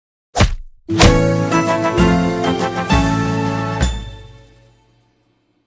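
A bright victory jingle plays and fades.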